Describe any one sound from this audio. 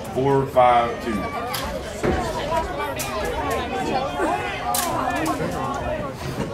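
A crowd of children and adults chatters and cheers at once.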